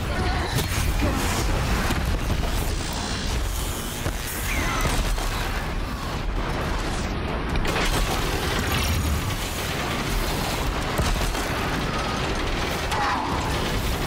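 A large machine creature stomps and roars.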